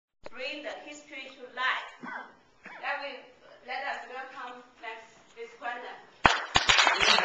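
A young woman speaks calmly into a room.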